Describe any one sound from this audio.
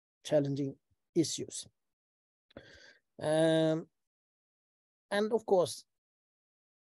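An older man speaks calmly in short phrases over an online call.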